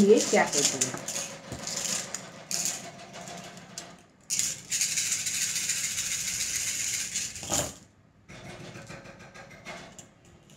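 Small shells clatter onto a cloth-covered table.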